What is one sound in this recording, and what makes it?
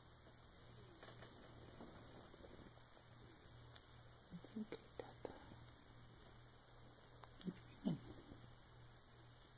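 A hand rubs and strokes a cat's fur.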